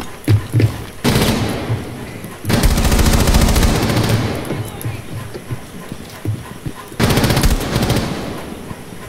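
A rifle fires loud rapid bursts close by.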